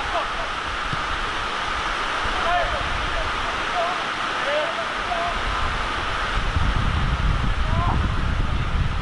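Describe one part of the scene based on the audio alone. Young men shout to each other across an outdoor pitch, heard from a distance.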